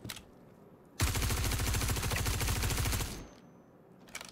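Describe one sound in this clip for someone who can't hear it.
A rifle fires a rapid burst of shots up close.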